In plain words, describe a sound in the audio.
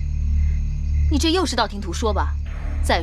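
A young woman answers in a doubtful tone.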